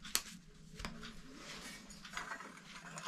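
A screwdriver scrapes and clicks against a metal light fitting.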